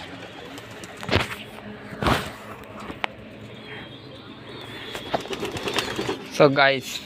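Pigeons flutter and flap their wings close by.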